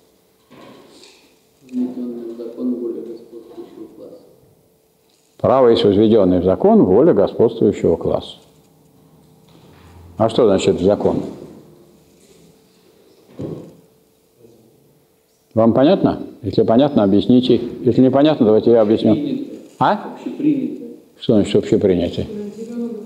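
An elderly man lectures calmly in a room that echoes a little, heard from across the room.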